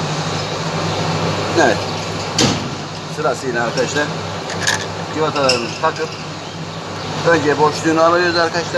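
Metal tools clink and clatter against a scooter's parts.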